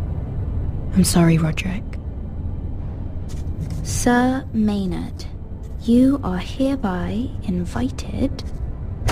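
A young woman speaks softly and sadly.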